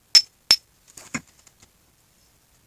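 A knife scrapes and clicks against wood.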